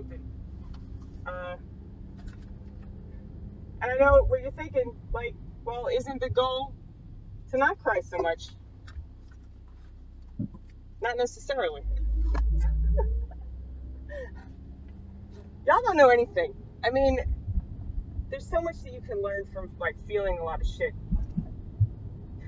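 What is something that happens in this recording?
A car engine hums steadily inside the car.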